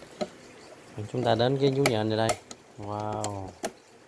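A plastic cage rattles and clicks as a hand handles it.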